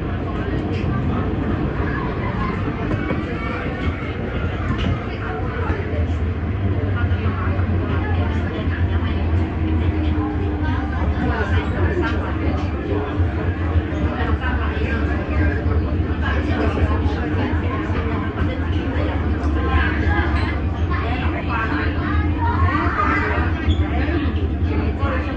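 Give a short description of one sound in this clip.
A train rumbles steadily along the tracks, its wheels clattering on the rails.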